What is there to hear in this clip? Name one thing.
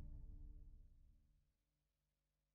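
An orchestra plays a sustained chord that fades away.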